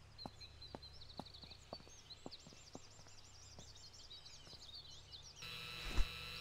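Footsteps tread at a walking pace.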